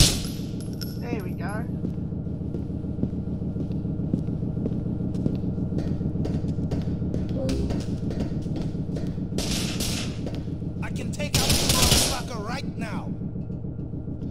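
A young man talks into a microphone, close up.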